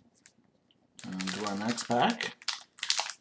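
A foil card wrapper crinkles in hands.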